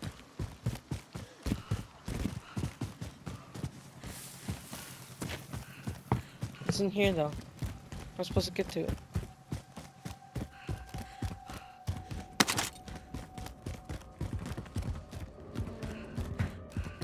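Footsteps patter quickly and steadily on hard ground.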